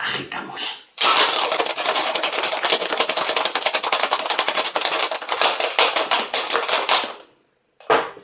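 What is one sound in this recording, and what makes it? Ice rattles hard inside a metal cocktail shaker being shaken.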